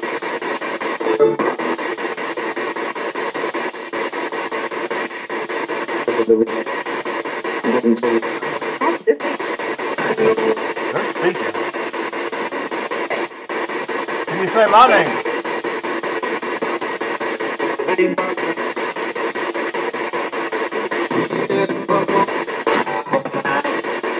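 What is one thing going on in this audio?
Brief snatches of voices burst from a small radio loudspeaker.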